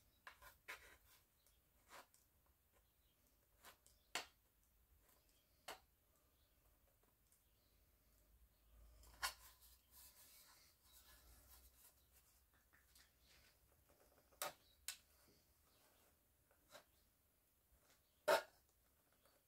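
Metal cans clink and tap sharply now and then.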